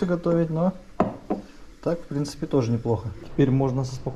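A cup clinks onto a saucer.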